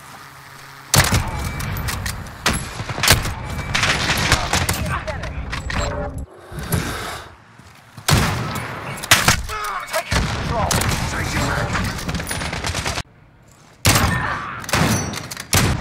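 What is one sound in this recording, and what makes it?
Sniper rifle shots crack loudly, one at a time.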